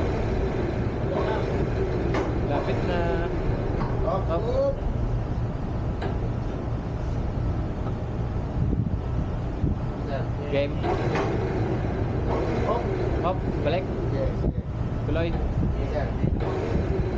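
A man talks outdoors.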